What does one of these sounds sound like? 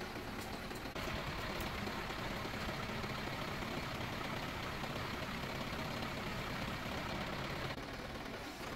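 A hydraulic pump whirs loudly.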